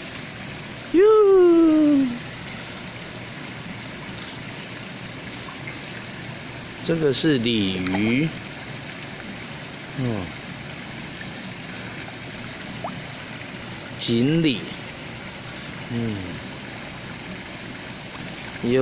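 Fish splash and churn at the water's surface.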